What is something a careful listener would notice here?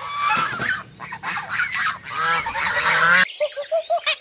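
Gulls cry and squawk close by.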